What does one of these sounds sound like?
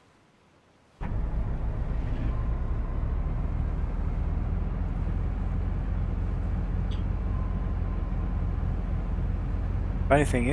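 A motorboat engine starts and runs at low speed.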